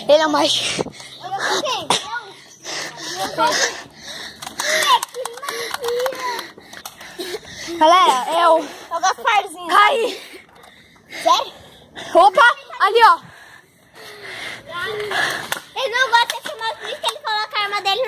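A child talks and squeals excitedly close by.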